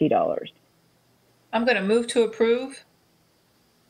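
A woman speaks briefly and calmly over an online call.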